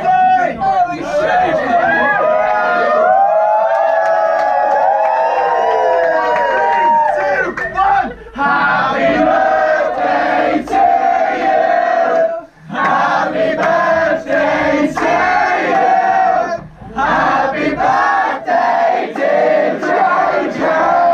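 A crowd of young men sings and chants loudly together.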